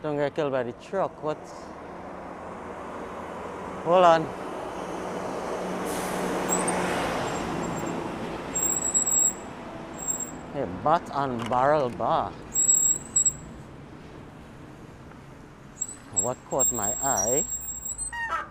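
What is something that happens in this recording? Bicycle tyres roll over rough pavement.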